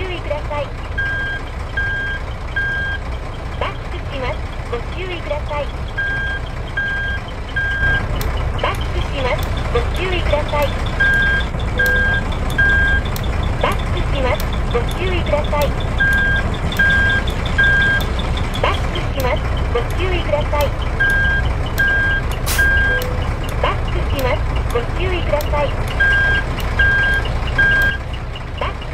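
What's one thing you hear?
A truck's reversing alarm beeps in short bursts of three.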